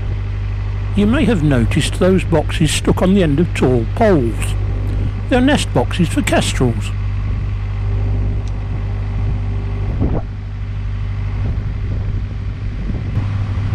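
A boat engine hums steadily.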